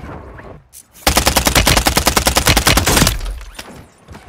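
An automatic rifle fires a long, rapid burst of shots.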